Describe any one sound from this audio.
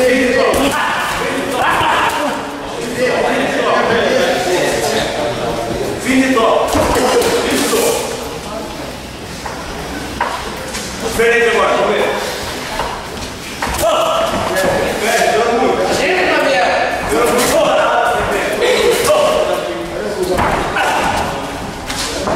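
Boxing gloves thud against padding in quick punches.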